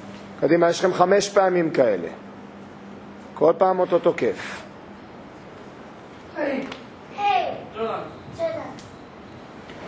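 A man speaks close by in a calm, instructing voice.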